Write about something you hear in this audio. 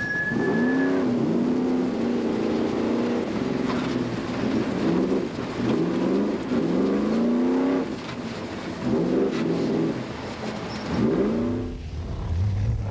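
An engine roars and revs up and down inside a racing car.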